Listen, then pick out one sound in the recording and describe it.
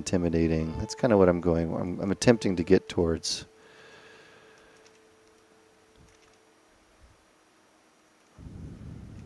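A man talks calmly into a close microphone.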